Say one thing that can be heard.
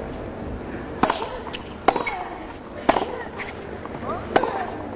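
A tennis ball is struck hard with a racket again and again.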